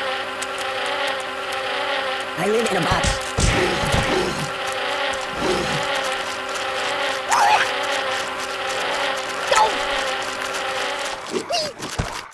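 Cheerful game music plays.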